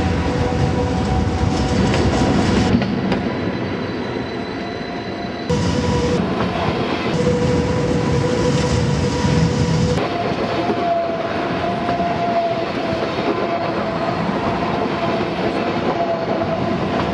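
A train rolls past close by with a steady rumble and whine.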